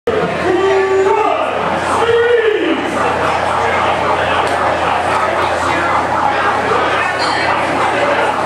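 A crowd chatters and shouts in a large indoor hall.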